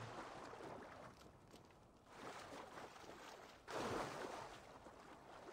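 Water splashes as a swimmer paddles through it.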